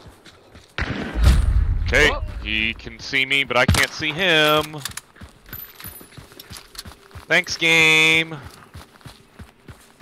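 Footsteps tread through grass and dirt.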